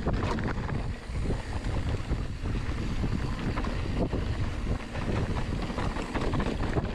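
A bicycle rattles and clatters over bumps.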